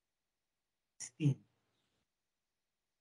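A young man speaks briefly through a computer microphone.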